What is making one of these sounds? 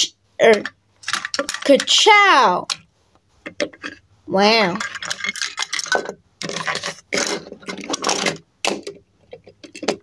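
Small plastic toy cars clack as they are picked up and set down.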